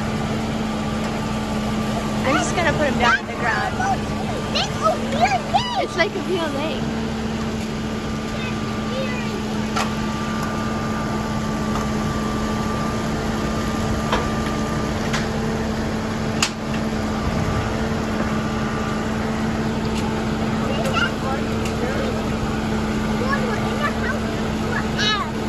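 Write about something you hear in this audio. A diesel engine idles steadily nearby.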